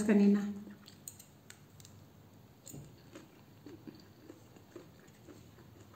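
A woman chews a mouthful of arugula salad with soft crunches.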